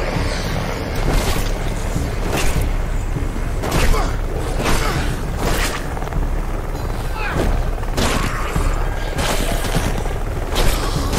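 Gunshots crack in quick, sharp bursts.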